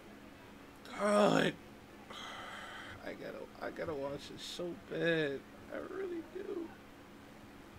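A young man speaks in a choked, tearful voice close to a microphone.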